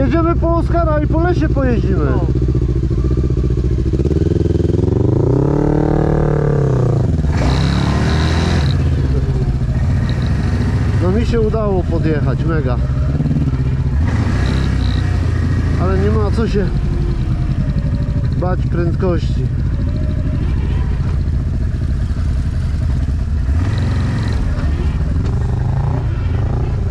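A second quad bike engine buzzes nearby.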